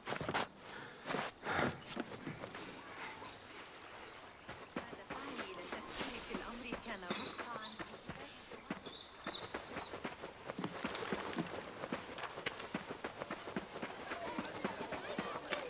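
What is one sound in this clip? Footsteps run quickly over sandy ground.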